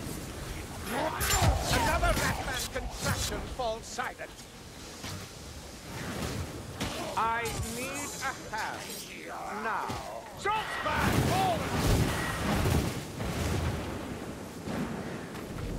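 Weapons clash and strike hard in quick blows.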